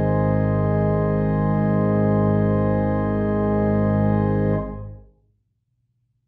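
An organ plays a loud sustained chord that fades out.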